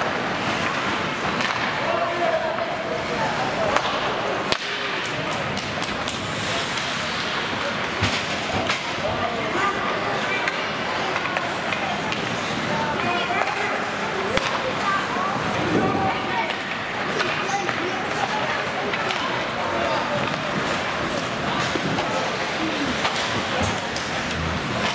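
Spectators murmur and call out in a large echoing arena.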